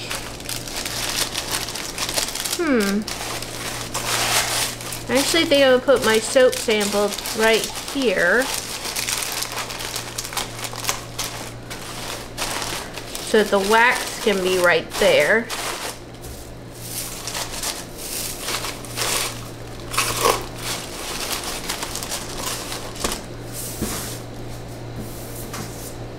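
Paper shred and paper rustle and crinkle.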